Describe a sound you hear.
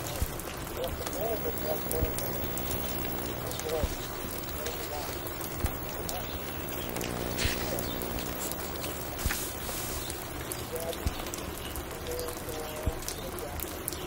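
A vinyl record crackles and pops softly.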